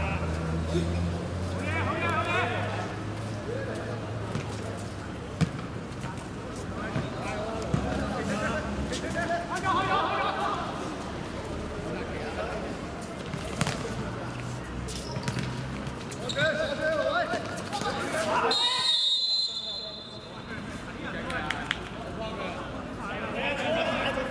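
Young men shout and call out to each other outdoors.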